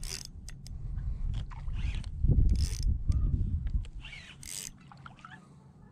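A fishing reel clicks and whirs as its handle turns.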